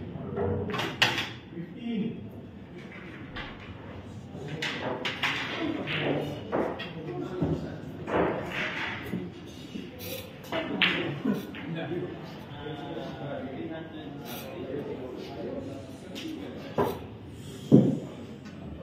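Pool balls clack sharply against each other.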